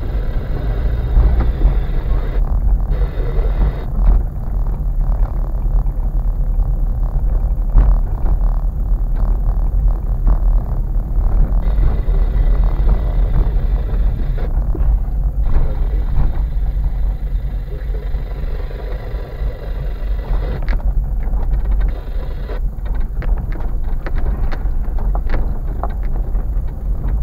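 Tyres crunch and rattle over a rough, bumpy road.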